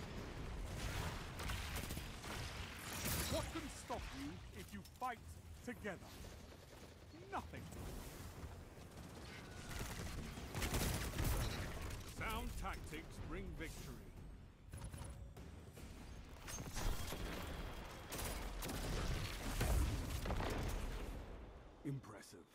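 Video game gunfire and energy blasts go off in bursts.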